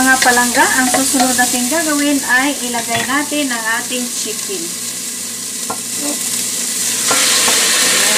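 Onions sizzle softly in a pan.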